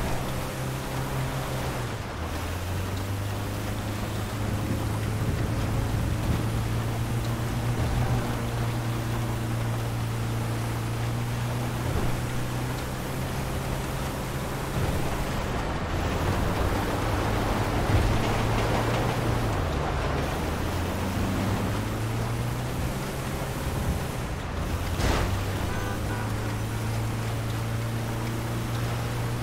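Tyres hiss over snowy road.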